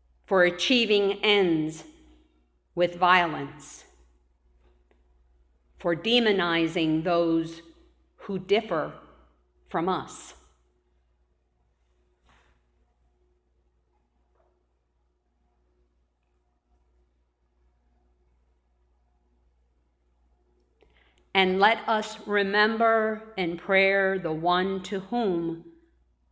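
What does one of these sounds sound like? A woman speaks slowly and clearly into a microphone, with pauses, in an echoing room.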